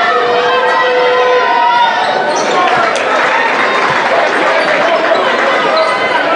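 A large crowd cheers and shouts in an echoing gym.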